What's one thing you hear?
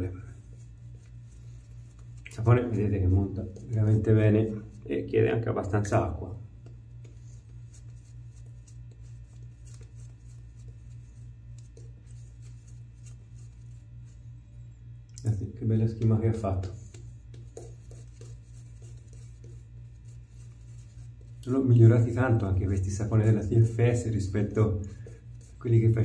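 A shaving brush swishes lather over stubble.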